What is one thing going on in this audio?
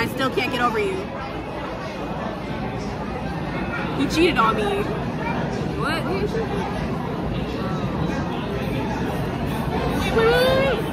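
A crowd chatters steadily in a busy room.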